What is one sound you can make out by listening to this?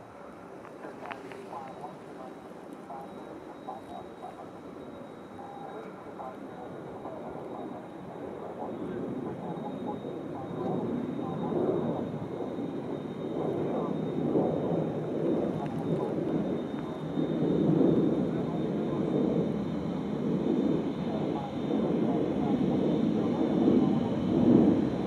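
A jet airliner's engines rumble as it taxis closer, growing steadily louder.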